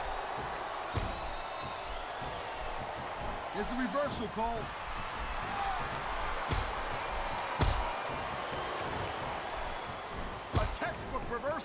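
Blows land with heavy thuds.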